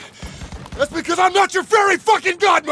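A man shouts gruffly at close range.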